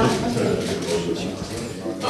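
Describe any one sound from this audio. Scissors snip through a ribbon.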